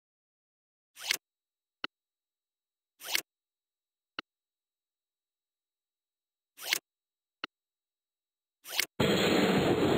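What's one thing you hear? A short whoosh sounds each time a piece snaps into place.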